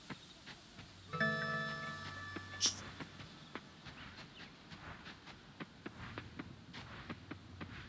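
Footsteps tread steadily on a dirt path.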